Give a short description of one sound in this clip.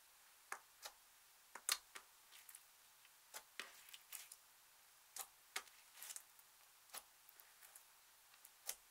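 Sticky slime squelches and crackles as fingers squeeze and poke it.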